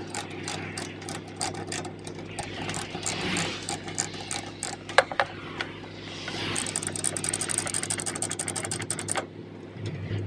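A ratchet binder clicks as a lever is cranked.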